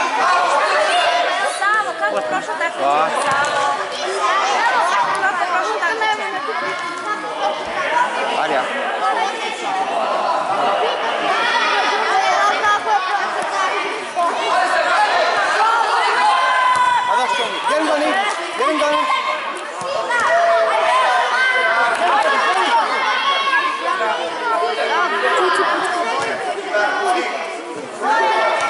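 Children shout and call out excitedly in a large echoing hall.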